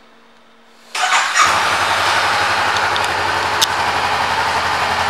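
A motorcycle engine starts up and idles with a steady rumble.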